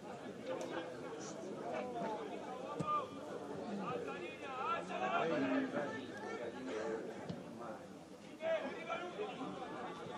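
Young men shout and call to each other at a distance outdoors.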